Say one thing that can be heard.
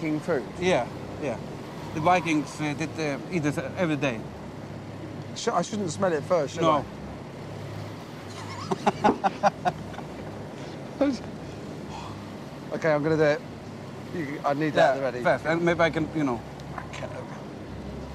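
An older man talks close by.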